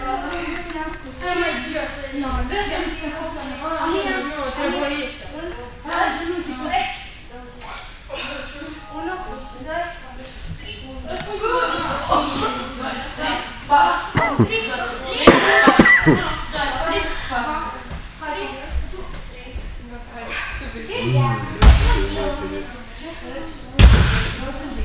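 A woman speaks calmly in a large echoing hall.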